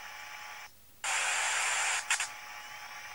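A television hisses with loud static.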